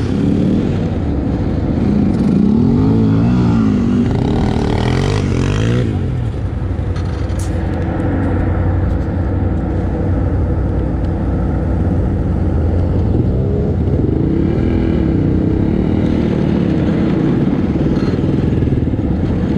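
A quad bike engine revs up and down close by.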